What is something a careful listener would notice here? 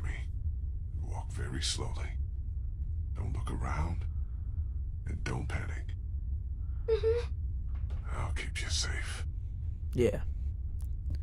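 A man speaks quietly and urgently.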